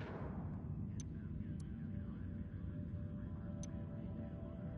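Soft clicks sound now and then.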